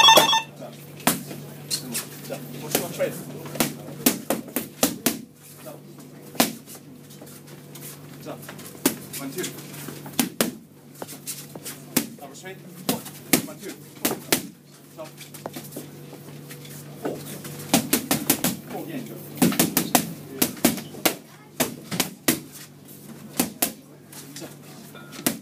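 Boxing gloves thud sharply against pads in quick bursts.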